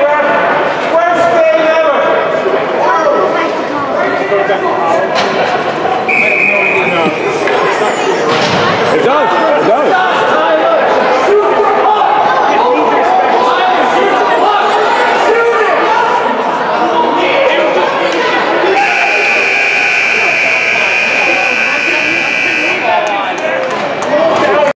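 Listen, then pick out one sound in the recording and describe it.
Spectators chatter and call out in a large echoing rink.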